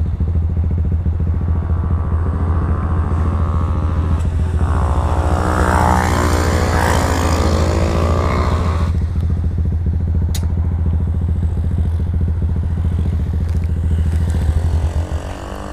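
A motorbike engine drones loudly and steadily close by.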